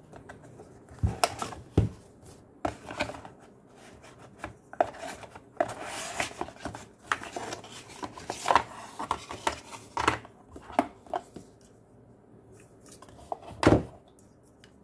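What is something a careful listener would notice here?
Objects knock lightly on a hard surface.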